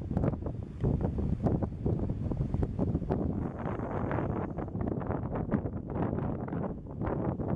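Tall grass rustles in the wind.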